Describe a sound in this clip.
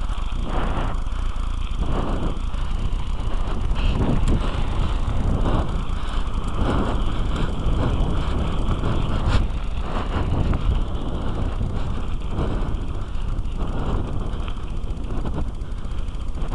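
Bicycle tyres roll and crunch over dry dirt.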